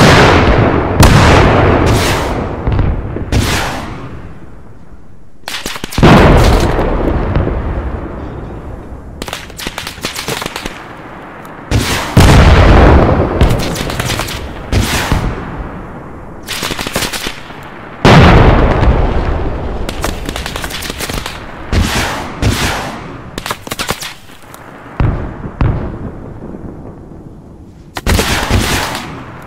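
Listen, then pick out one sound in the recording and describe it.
Shells explode with sharp cracks and crackling debris.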